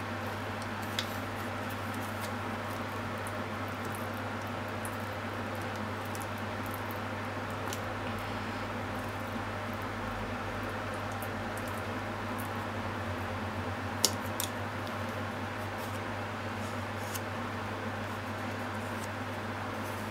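A wooden spoon taps and scrapes softly against a plastic dish.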